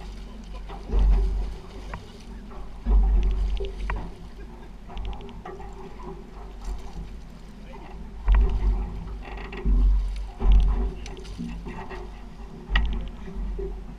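A fishing reel clicks and whirs as line is pulled.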